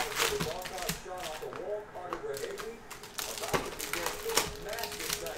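Cardboard boxes and foil packs rustle and knock as they are handled.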